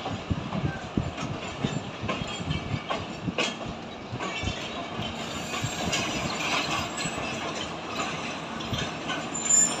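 A train rolls slowly along the tracks, its wheels clattering and knocking over the rail joints.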